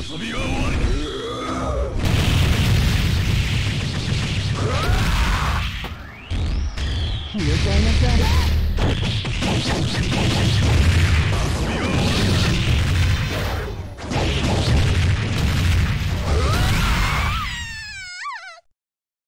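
Heavy hits and blasts crash and boom rapidly in a video game fight.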